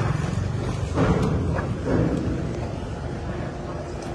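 A car door unlatches with a click and swings open.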